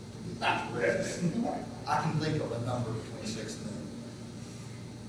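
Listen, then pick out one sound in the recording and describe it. A middle-aged man talks calmly into a microphone.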